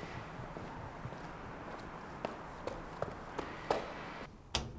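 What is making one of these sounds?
Footsteps climb metal stairs.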